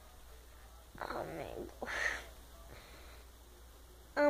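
A young girl speaks close by, whining and groaning.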